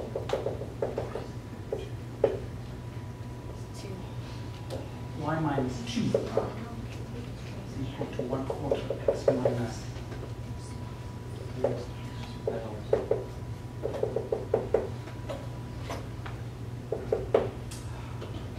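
A marker squeaks and taps against a whiteboard.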